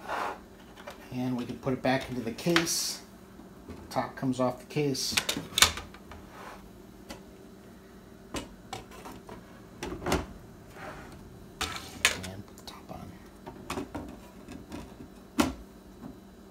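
Wooden panels knock and clatter as a small crate is taken apart and put back together.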